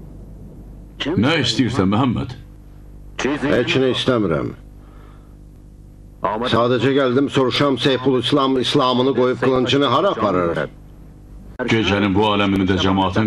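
A man speaks loudly and urgently nearby.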